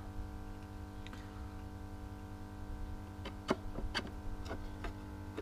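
An electrical device hums steadily.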